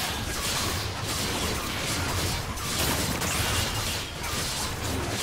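Magical blasts whoosh and crackle in a fantasy battle.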